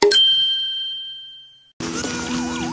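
A chime rings out and fades.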